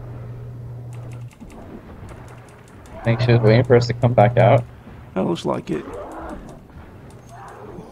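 Magic blasts and sword hits crash in a fight.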